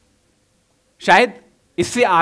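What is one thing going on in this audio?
A young man speaks into a microphone to an audience.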